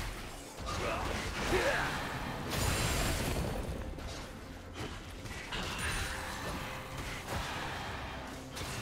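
Magic blasts whoosh and crackle in a game battle.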